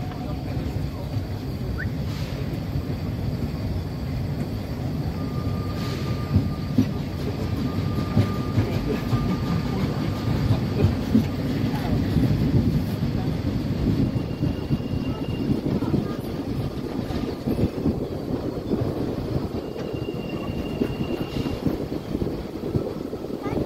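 A small train rumbles steadily along its track.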